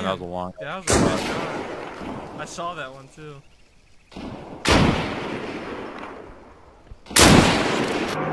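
A rifle fires loud single shots that echo away.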